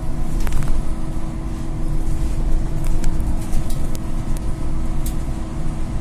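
A bus engine rumbles steadily from inside the bus as it drives.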